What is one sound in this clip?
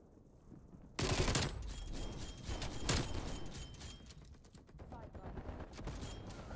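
Pistols fire in rapid bursts.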